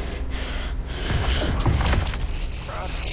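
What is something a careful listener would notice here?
A car crashes to the ground with a loud metallic bang.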